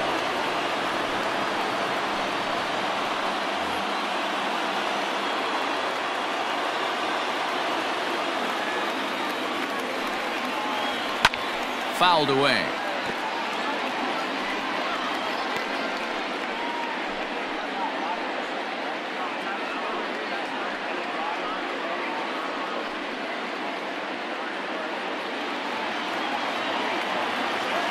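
A large crowd murmurs and cheers steadily in a big open stadium.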